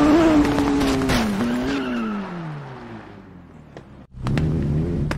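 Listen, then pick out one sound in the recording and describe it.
A motorcycle engine winds down and falls silent.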